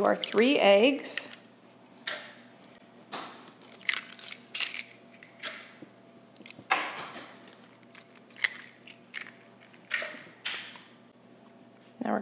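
An egg cracks against a bowl's rim.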